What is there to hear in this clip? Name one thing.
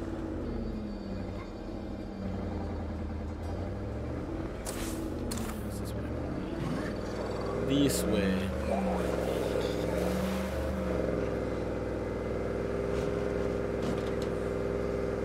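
A truck engine hums and revs as the truck drives along a road.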